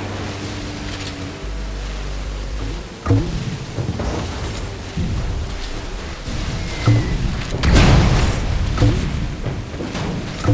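A small motorboat engine hums steadily.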